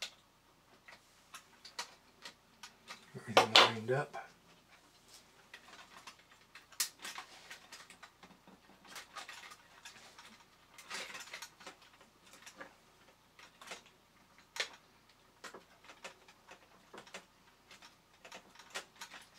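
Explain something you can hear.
Small plastic and metal parts click and tap as hands handle a toy.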